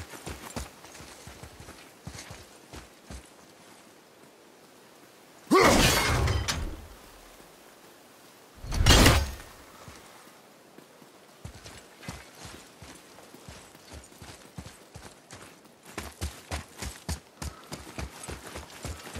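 Footsteps thud quickly on dirt and grass.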